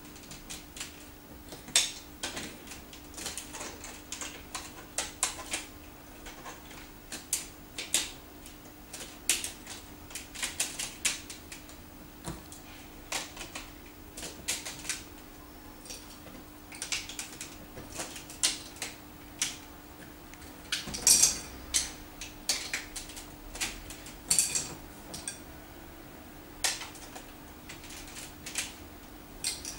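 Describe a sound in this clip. Plastic building pieces click and clack together as a child snaps them into place.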